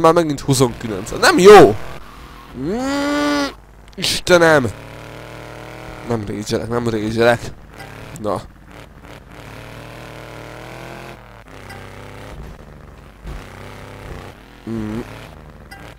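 A quad bike engine revs and hums steadily.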